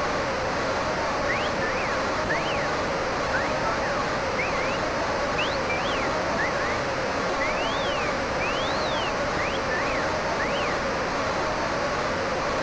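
A large crowd cheers and murmurs steadily in a big arena.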